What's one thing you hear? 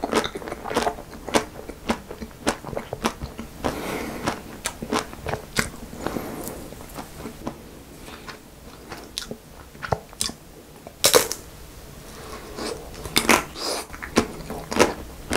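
A young man chews and smacks his lips wetly up close.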